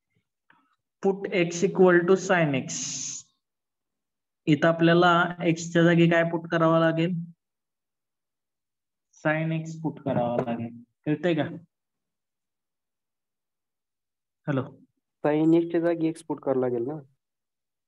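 A man explains calmly into a microphone, speaking in short bursts.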